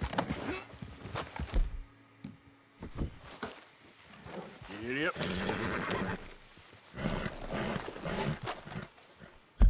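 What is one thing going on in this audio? A horse's hooves thud slowly on soft ground.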